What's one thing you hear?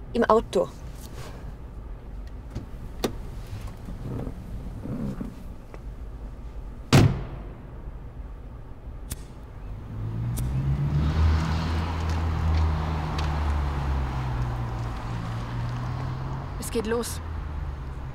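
A young woman speaks briefly up close.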